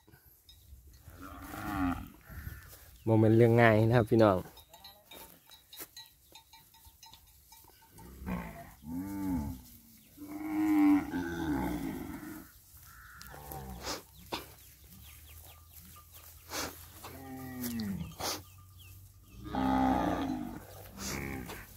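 Cattle moo loudly nearby, one call after another.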